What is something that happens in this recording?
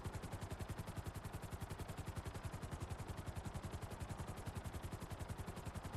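Helicopter rotor blades thump rapidly and steadily close by.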